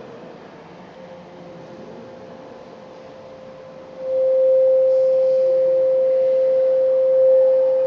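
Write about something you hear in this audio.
A steady electronic tone sounds from loudspeakers and suddenly grows much louder.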